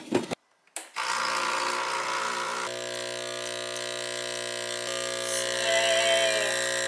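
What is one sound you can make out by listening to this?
An espresso machine hums and hisses steadily while brewing.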